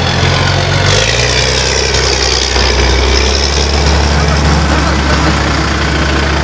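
A van engine hums as it drives past.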